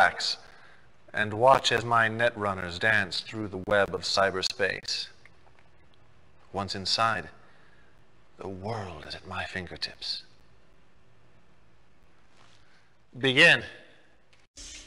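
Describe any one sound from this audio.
A man speaks calmly and theatrically, close to a microphone.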